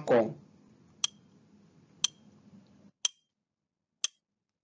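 A countdown timer ticks once a second.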